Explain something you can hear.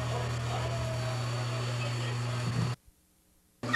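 A train engine hums steadily close by.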